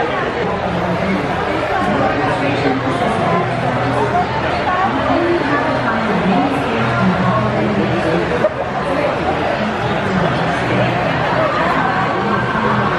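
A crowd of men and women chatter all around in a large, echoing hall.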